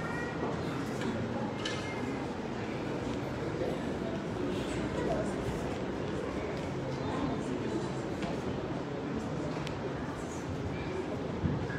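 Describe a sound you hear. A crowd of people chatters in a large echoing room.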